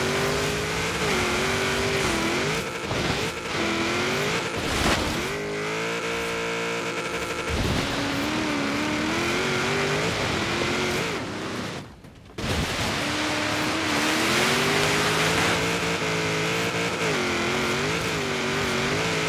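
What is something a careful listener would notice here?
A rally car engine revs up and down hard as gears shift.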